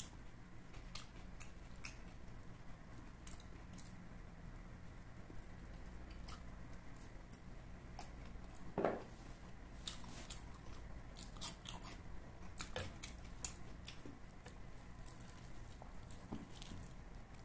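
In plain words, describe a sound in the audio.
Roast chicken meat tears apart with a soft crackle.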